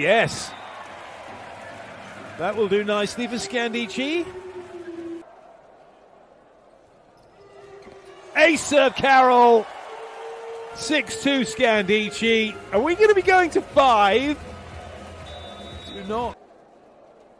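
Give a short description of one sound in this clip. A crowd cheers in a large echoing hall.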